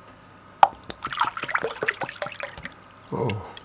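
Liquid pours from a plastic bottle into a glass.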